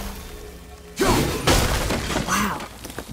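A wooden barricade smashes apart with a loud crash.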